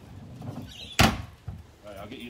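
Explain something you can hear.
A plastic bin lid thuds shut.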